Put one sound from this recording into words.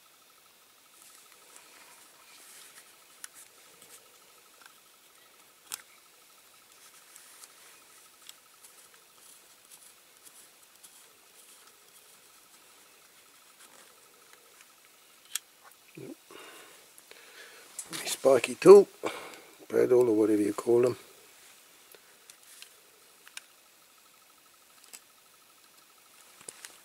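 Small plastic parts click and tap faintly as they are handled.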